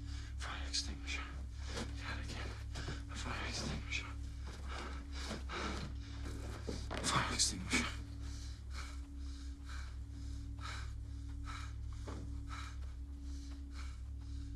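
A man speaks in a low, hushed voice close by.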